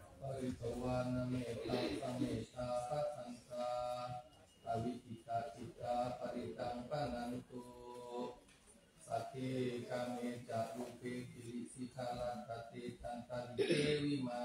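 Several men chant together in a steady, droning rhythm, with a slight echo.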